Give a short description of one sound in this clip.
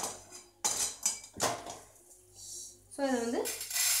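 Dry seeds rattle as they pour onto a metal plate.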